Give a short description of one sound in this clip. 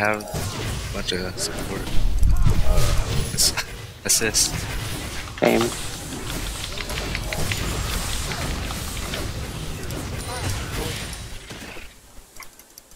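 Magic blasts and weapon strikes crackle and thud in a fast fight.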